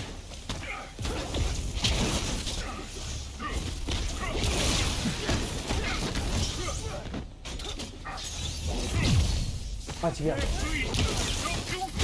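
Electric blasts crackle and roar.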